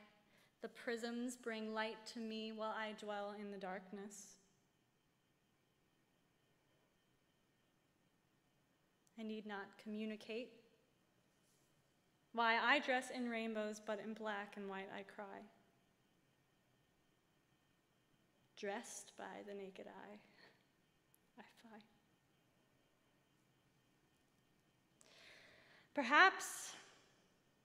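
A young woman sings in phrases through a microphone.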